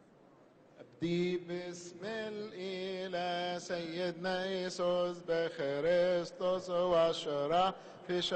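A crowd of men chants together in unison.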